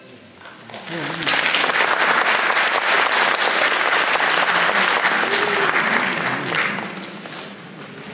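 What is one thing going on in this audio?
A group of harmonicas plays together on a stage.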